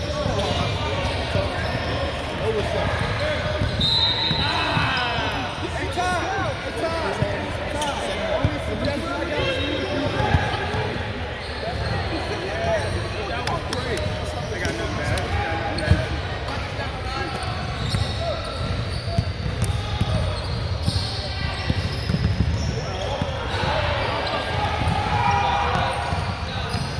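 Young people talk and call out across a large echoing gym.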